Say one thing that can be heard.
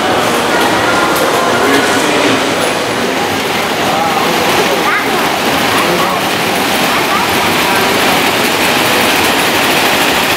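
A model train rattles steadily along its track.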